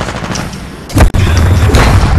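A sniper rifle fires a loud, booming shot.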